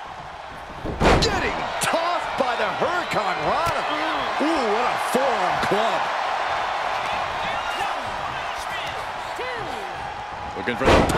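Wrestlers slam heavily onto the mat with loud thuds.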